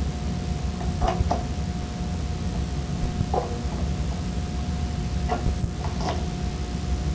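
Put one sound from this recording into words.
A metal tool clicks and taps against a metal fitting.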